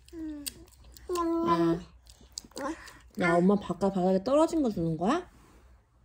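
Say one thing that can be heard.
A toddler laughs close by.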